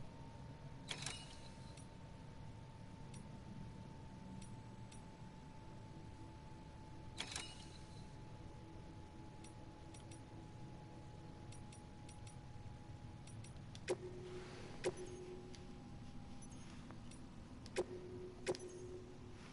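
Short electronic menu blips sound as options are selected.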